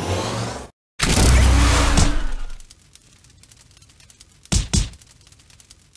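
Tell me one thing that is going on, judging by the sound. A toy ragdoll thuds and bounces against the ground.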